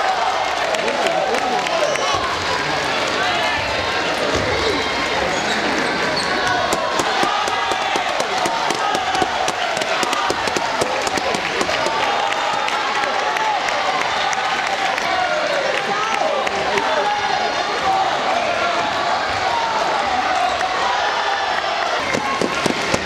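A crowd of young people chatters and cheers in a large echoing hall.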